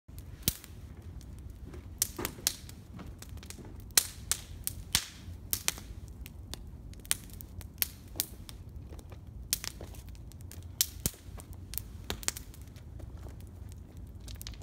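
A wood fire crackles and pops close by.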